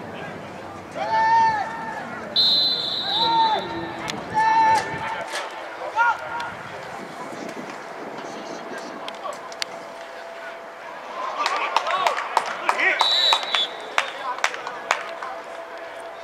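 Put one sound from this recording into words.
A crowd cheers and shouts across an open field outdoors.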